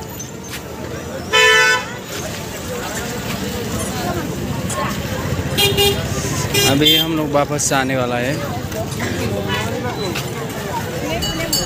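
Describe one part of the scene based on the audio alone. An auto-rickshaw engine putters past.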